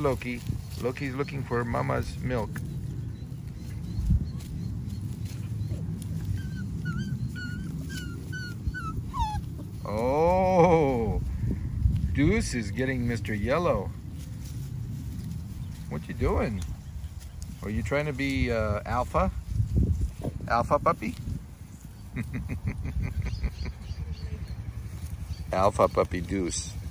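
Puppies scramble and rustle through grass.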